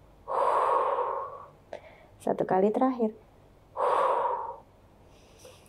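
A young woman breathes out slowly and audibly, close by.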